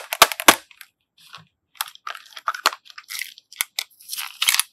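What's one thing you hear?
A plastic case clicks and rattles as it is opened.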